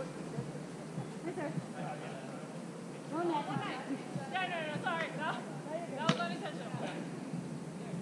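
Young women call out to each other across an open outdoor space.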